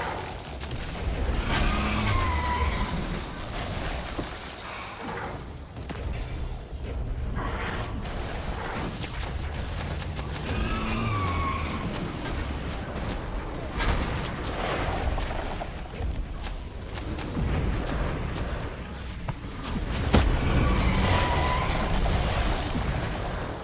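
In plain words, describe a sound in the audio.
Spell blasts and explosions crash and boom in a game battle.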